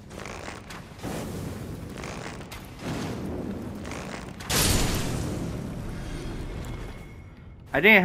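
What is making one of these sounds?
A burst of flame whooshes and roars.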